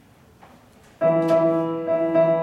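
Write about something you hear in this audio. An organ plays a sustained chord.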